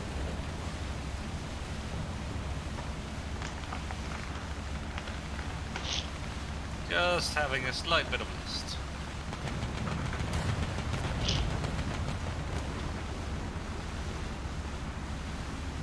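A ship's engine rumbles low and steadily.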